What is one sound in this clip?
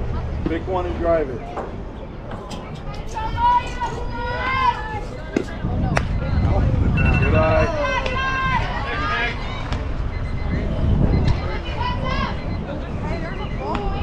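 Young girls shout and cheer from across an open field.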